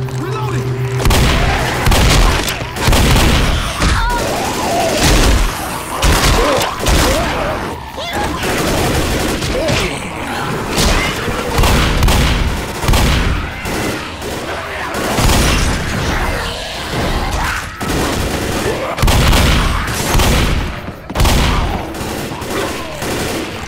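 A shotgun fires loud, booming blasts again and again.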